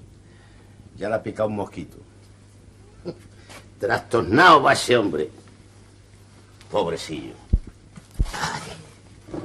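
A middle-aged man talks with feeling, in bursts.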